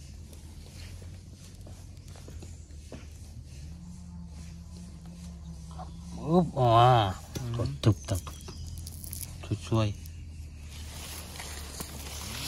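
Fingers scrape and dig into dry soil.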